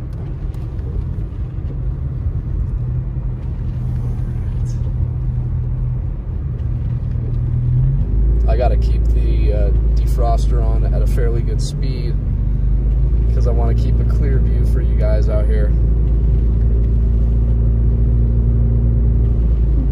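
Tyres hiss and crunch over a snowy road.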